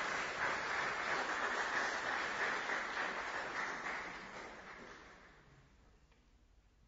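An audience applauds in a large echoing hall, then the applause fades away.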